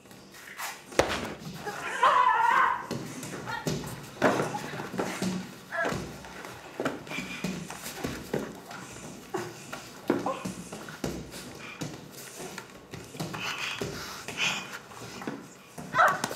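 Bodies thud and scuffle on a mat.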